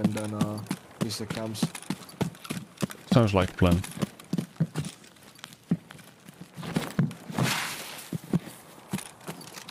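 Footsteps thud steadily on soft ground and grass.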